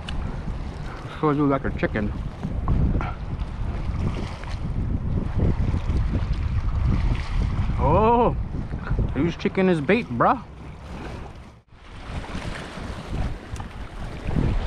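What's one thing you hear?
Small waves lap against rocks close by.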